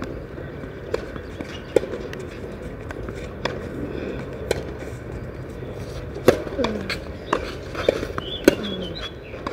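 A tennis ball is struck sharply with a racket.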